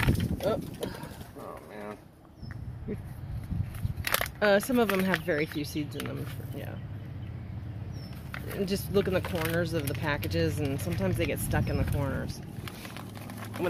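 A paper packet rustles and crinkles in a hand.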